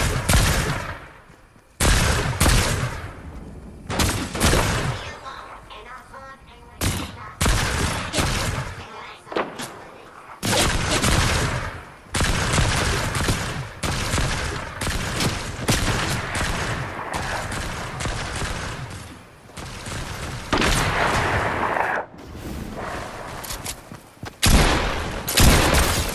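Footsteps run quickly over grass and pavement.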